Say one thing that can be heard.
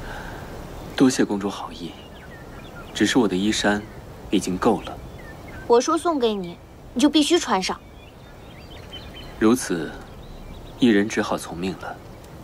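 A young man speaks calmly and softly.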